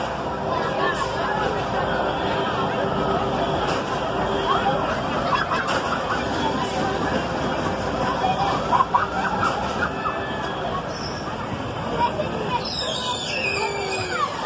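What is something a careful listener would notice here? Riders scream and shout on a fairground ride.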